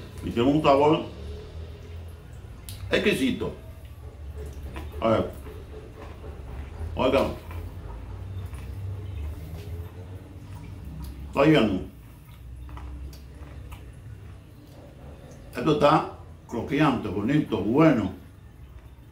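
An older man speaks calmly and close by, in short phrases with pauses.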